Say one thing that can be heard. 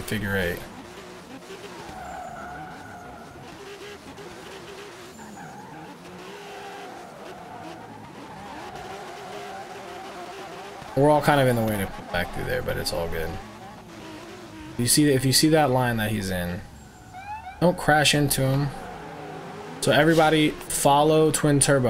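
Car tyres screech as cars drift.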